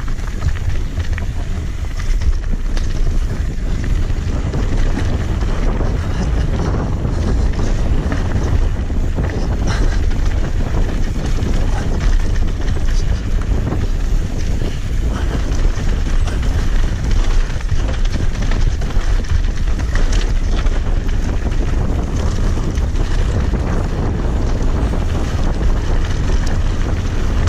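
Wind rumbles loudly past close by.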